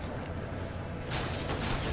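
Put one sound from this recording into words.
Laser blasts zap and crackle in quick bursts.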